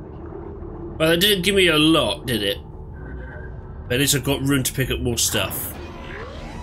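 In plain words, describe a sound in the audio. A man speaks with animation close to a headset microphone.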